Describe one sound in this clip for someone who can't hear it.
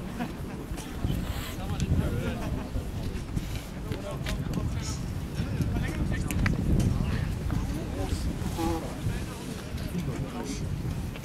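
Wind rumbles across an open field outdoors.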